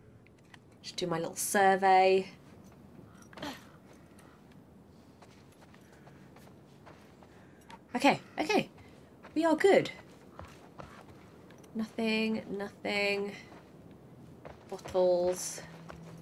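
A young woman talks casually and expressively into a close microphone.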